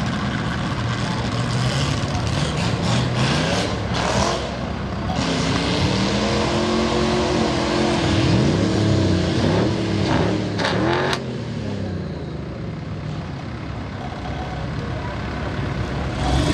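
A truck engine revs hard, rising and falling.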